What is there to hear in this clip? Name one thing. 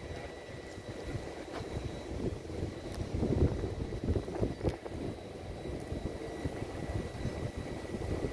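Wind blows outdoors and buffets loudly throughout.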